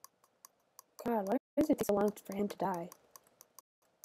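A young woman speaks briefly and animatedly, close to a microphone.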